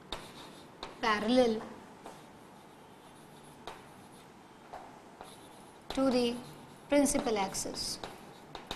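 A woman speaks calmly and close by, in short phrases.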